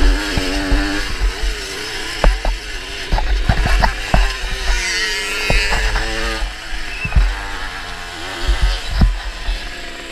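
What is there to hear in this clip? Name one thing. Wind buffets loudly against a rider.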